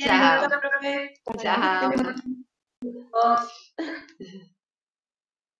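A woman speaks cheerfully over an online call.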